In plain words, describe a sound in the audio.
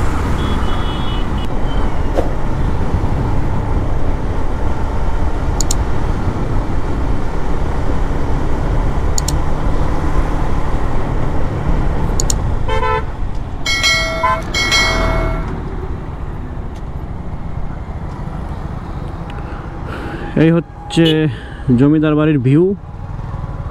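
Wind rushes loudly past a moving motorcycle.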